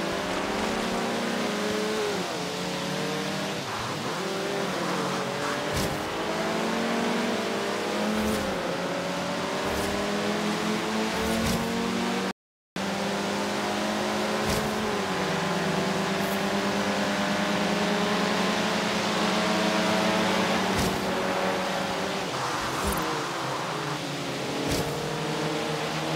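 Tyres squeal on wet tarmac.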